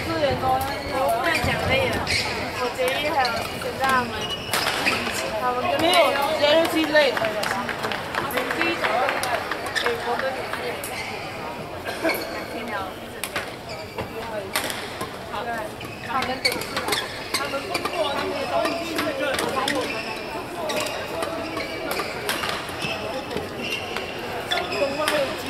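Several men talk and call out nearby in a large echoing hall.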